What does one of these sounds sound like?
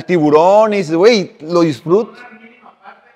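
A young man speaks with animation through a microphone, in a room with some echo.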